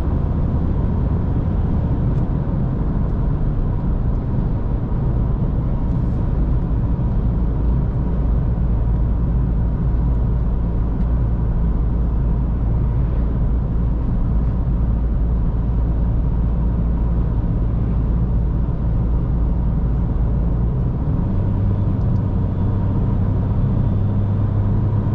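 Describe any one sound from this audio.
A car engine hums steadily at cruising speed.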